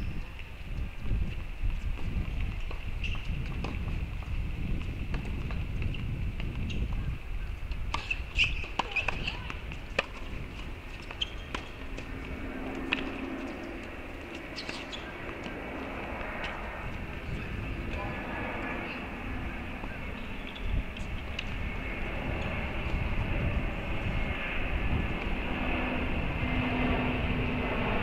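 Wind rumbles across an open outdoor space.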